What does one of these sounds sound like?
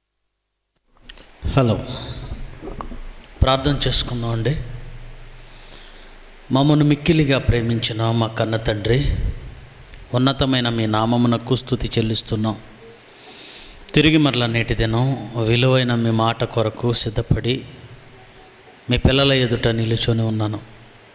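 A man speaks calmly and slowly into a microphone, with pauses.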